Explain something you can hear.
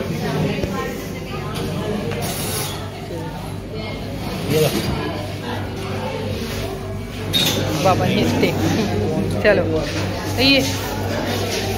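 Voices murmur and chatter.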